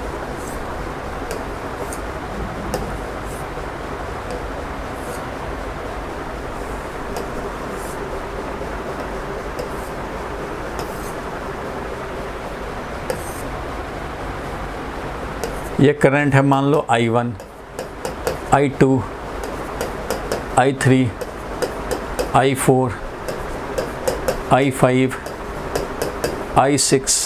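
A marker squeaks faintly on a board.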